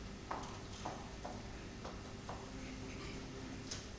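Footsteps cross a wooden stage.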